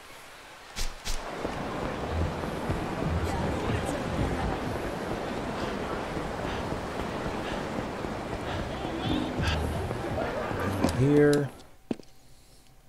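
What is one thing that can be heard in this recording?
A busy street hums with a crowd's murmur.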